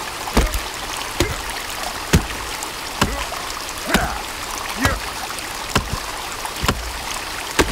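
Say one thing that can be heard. An axe chops into a tree trunk with steady, regular thuds.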